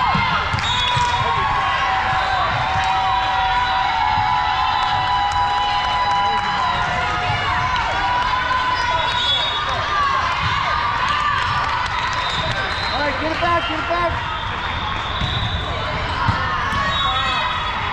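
Many voices of players and onlookers echo through a large hall.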